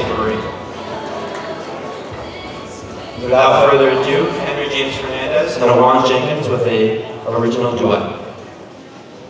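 A band plays through loudspeakers.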